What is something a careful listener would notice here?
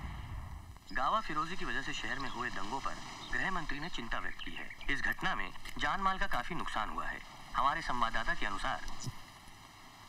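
A man speaks through a television speaker.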